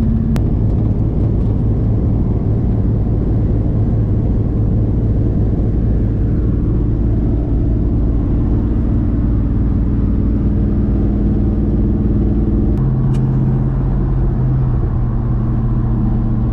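A car engine hums steadily while driving at speed.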